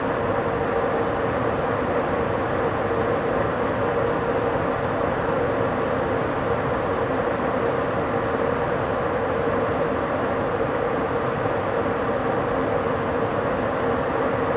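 A fast train rumbles steadily along the rails.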